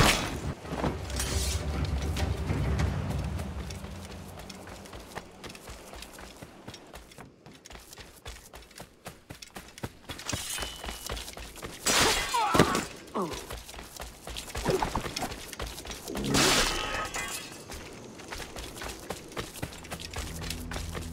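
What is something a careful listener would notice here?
Footsteps run quickly over ground.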